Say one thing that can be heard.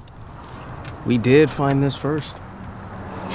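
A young man speaks nearby.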